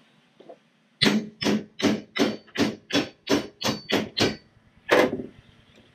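A hammer taps quickly and repeatedly on metal.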